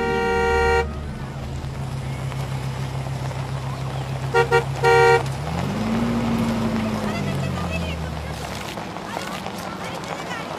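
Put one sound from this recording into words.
A car engine hums low and steady, then rises briefly.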